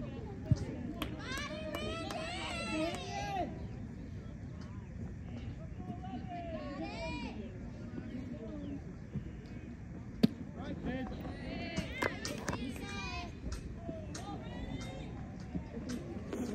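Men and boys call out across an open field in the distance.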